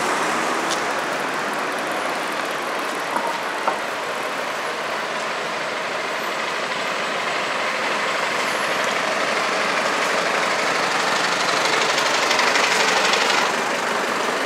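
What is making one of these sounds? A truck engine drones close by as the truck passes slowly.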